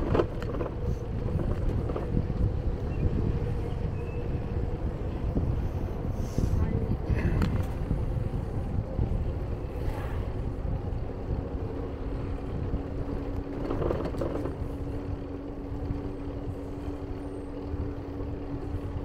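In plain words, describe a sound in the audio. Wind buffets and rumbles steadily as a bicycle rides along outdoors.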